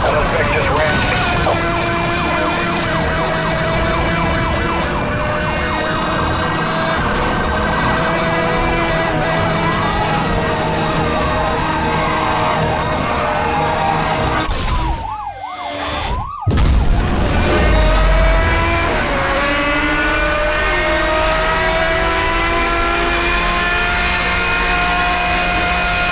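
A sports car engine roars loudly at high revs, shifting gears.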